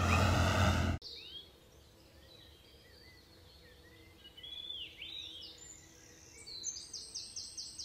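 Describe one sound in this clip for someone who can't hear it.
A small bird chirps.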